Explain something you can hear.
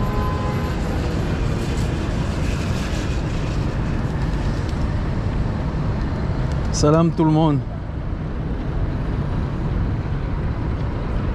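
Traffic hums faintly along a wide road outdoors.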